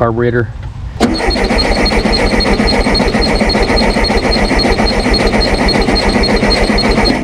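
A car engine starts and idles with a steady, rapid clatter.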